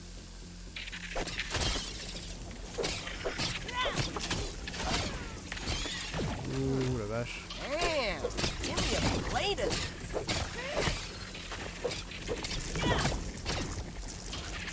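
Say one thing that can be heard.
A weapon strikes giant insects with sharp hits.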